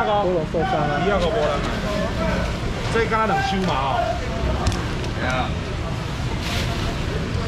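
A busy market hums with background chatter.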